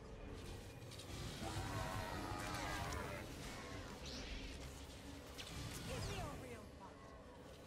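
Electric lightning crackles and buzzes in loud bursts.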